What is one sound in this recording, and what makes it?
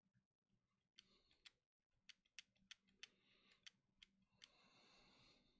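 Short electronic game blips tick in quick succession.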